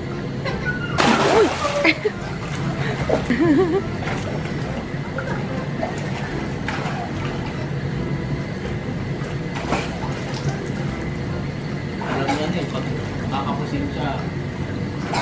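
Water splashes as a child swims.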